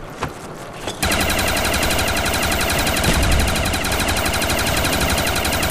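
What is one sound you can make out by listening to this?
A machine gun fires rapid, steady bursts up close.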